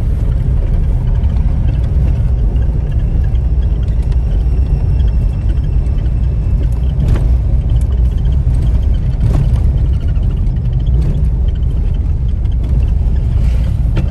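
Car tyres rumble on a paved road.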